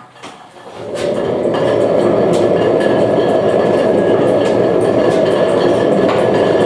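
An old oil engine runs with a steady loud chugging roar.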